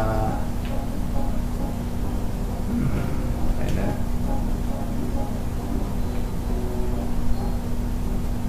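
Cheerful video game music plays steadily.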